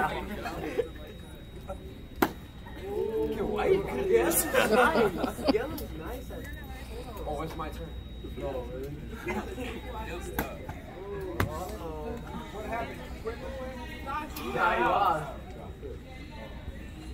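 Young men talk and chat nearby in a group.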